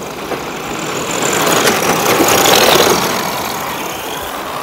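Tyres of toy cars skid and scrape on loose dirt.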